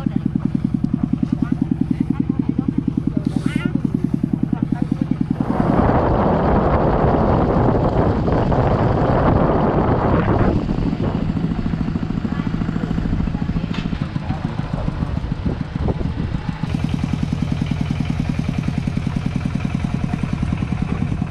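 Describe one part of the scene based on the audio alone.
A small tractor engine chugs steadily close by.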